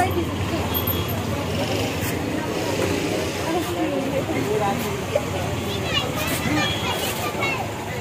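A crowd of men and women chatters all around.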